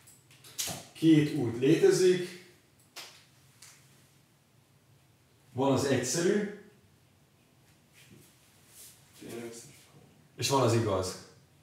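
A man speaks calmly nearby, in short phrases.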